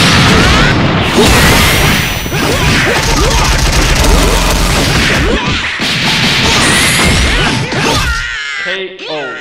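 Rapid punches, blasts and energy bursts crash and boom in a fast video game fight.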